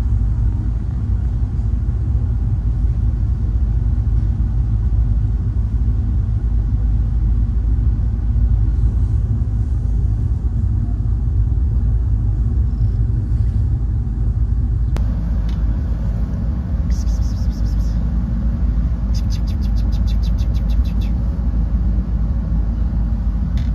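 A cat purrs steadily up close.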